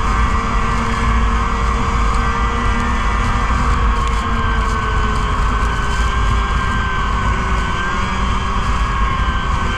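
A snowmobile engine drones steadily up close.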